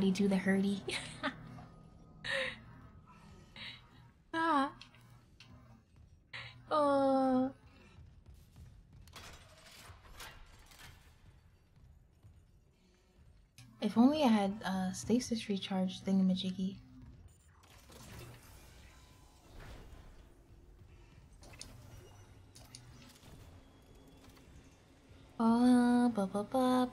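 A young woman talks animatedly into a close microphone in a high, playful voice.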